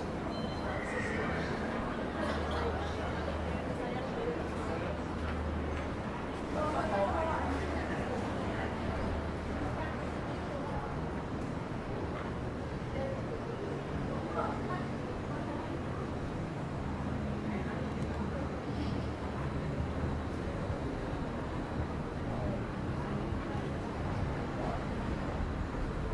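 A crowd of people chatter at a distance.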